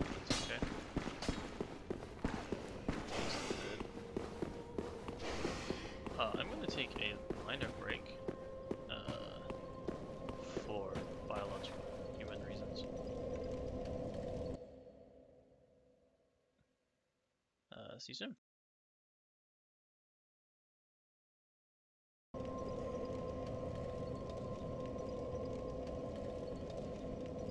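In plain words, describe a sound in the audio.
A small fire crackles softly.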